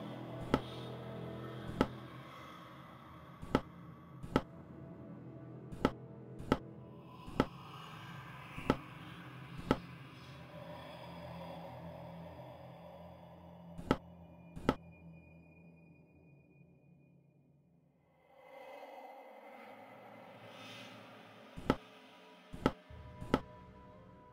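Short sharp clicks sound now and then as puzzle tiles are picked and swapped.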